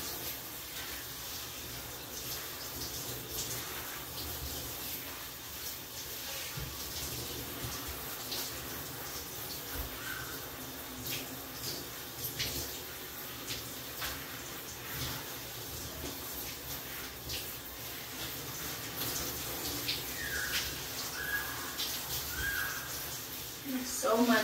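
Water sprays steadily from a shower hose.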